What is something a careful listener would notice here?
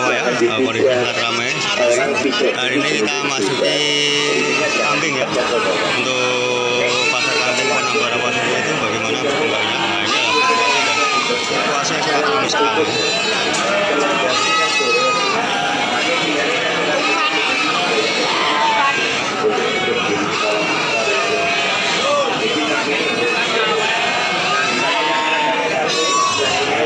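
A crowd of men talks in a busy chatter all around.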